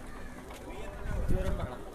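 A crowd of people sings and calls out outdoors.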